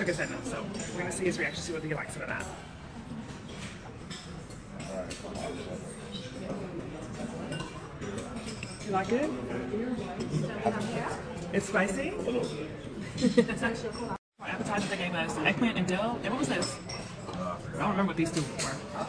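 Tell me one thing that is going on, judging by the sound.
Many voices murmur in the background.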